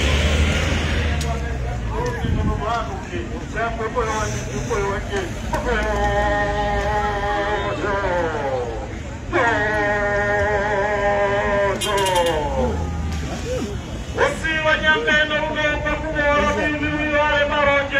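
A crowd talks and calls out in the background outdoors.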